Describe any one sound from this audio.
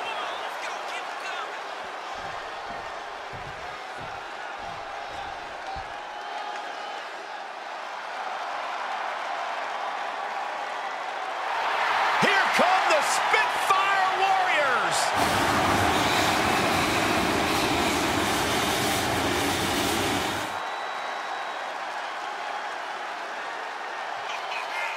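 A large crowd cheers and roars in a big echoing arena.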